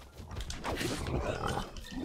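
A sword clashes with a sharp metallic hit.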